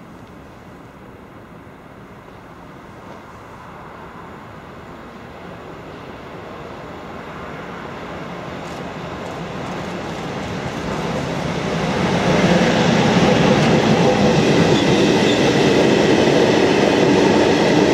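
A freight train approaches, growing steadily louder as it rumbles past close by.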